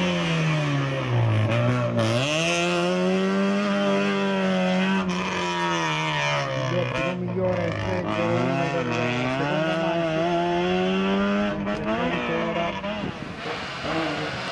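A four-cylinder race hatchback engine revs hard, rising and dropping through gear changes.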